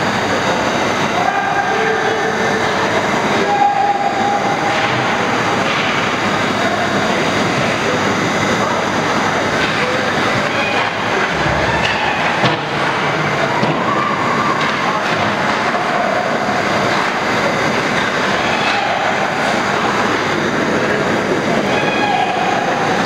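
Hockey skates scrape and carve on ice in a large echoing arena.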